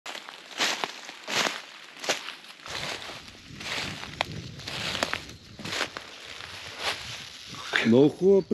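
Leaves rustle and snap as plants are picked by hand.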